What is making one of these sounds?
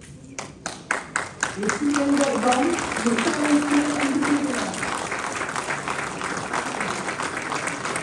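A small group of people claps.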